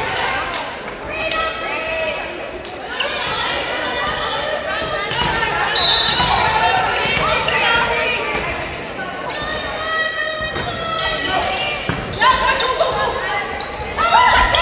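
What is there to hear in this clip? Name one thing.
Young women call out to each other across an echoing gym.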